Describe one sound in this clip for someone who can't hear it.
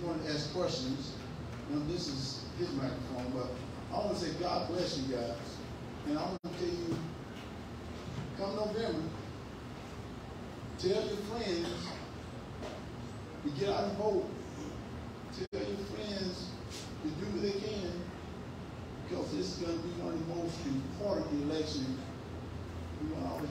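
A man speaks steadily into a microphone in a room with a slight echo.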